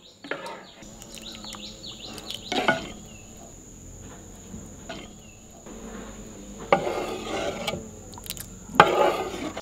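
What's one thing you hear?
A ladle scrapes and splashes in a runny curry.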